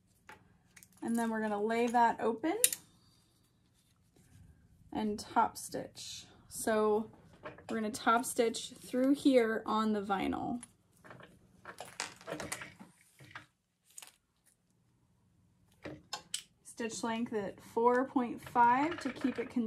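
A young woman talks calmly and close by.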